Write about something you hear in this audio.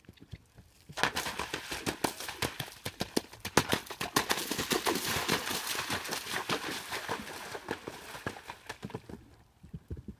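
A horse splashes at a trot through shallow water.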